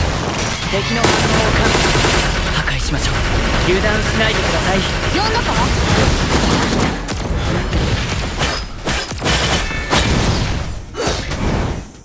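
Blades clash and slash with sharp metallic swishes.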